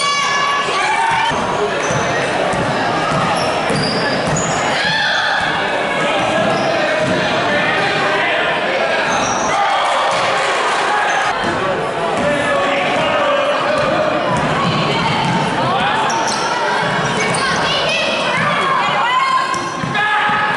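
A crowd of spectators chatters and cheers in an echoing gym.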